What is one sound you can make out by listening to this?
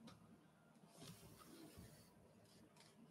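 A sheet of paper rustles and shifts briefly.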